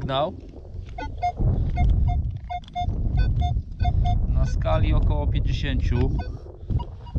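A metal detector beeps in quick, even pulses.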